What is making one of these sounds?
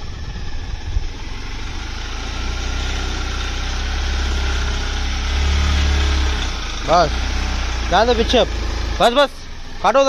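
A vehicle engine idles with a low, steady rumble.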